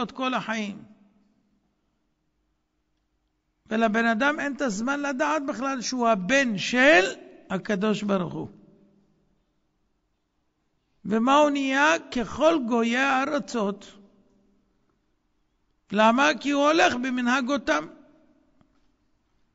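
A man speaks with feeling through a microphone in bursts, with pauses between them.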